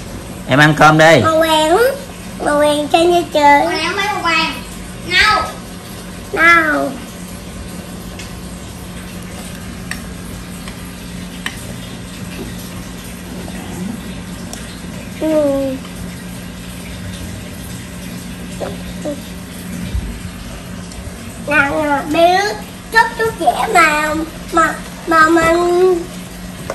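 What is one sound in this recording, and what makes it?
A young child chatters in a high voice close by.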